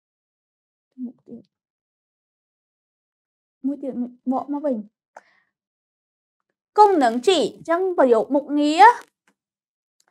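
A young woman speaks calmly and clearly up close, with pauses between phrases.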